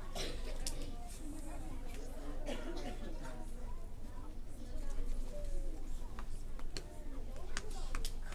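A woman speaks loudly to a group of children.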